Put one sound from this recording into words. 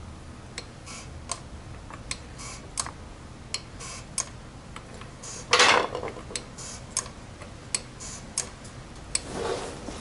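A floor jack's handle pumps with sharp metal clicks.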